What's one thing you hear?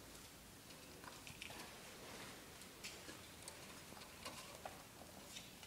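Small claws scrabble and tap on wooden rungs.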